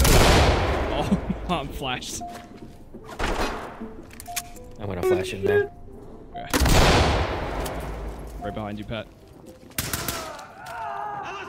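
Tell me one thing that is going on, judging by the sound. Gunshots crack loudly in bursts, echoing through rooms.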